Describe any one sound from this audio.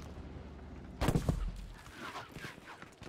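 An explosion booms nearby with a rumble.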